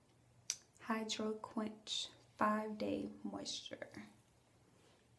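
A young woman talks calmly, close by.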